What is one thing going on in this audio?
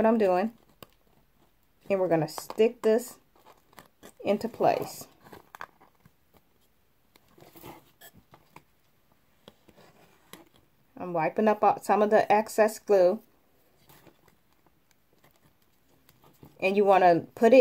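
Wooden craft sticks tap and click together.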